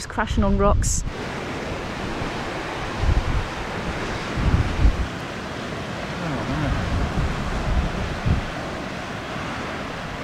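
Waves wash and break against rocks below.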